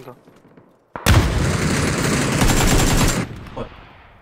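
A grenade explodes with a loud, rumbling boom.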